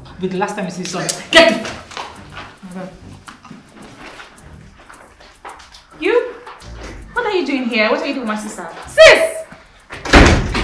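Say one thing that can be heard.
A woman speaks agitatedly, close by.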